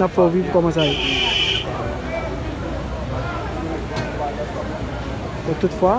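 A crowd of men and women murmurs and talks in the background.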